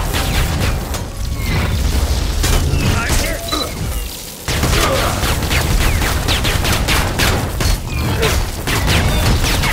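Gunfire crackles in rapid bursts.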